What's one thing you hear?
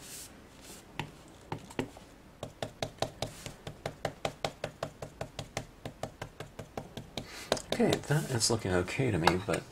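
A foam blending tool dabs on paper with quick, soft, regular taps.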